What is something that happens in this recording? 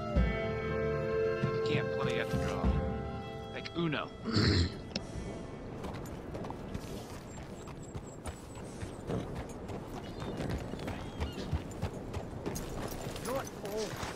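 A horse's hooves clop along a dirt track.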